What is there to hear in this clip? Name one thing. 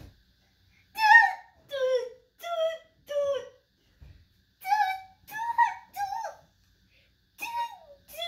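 A rubber chicken toy squawks loudly, again and again.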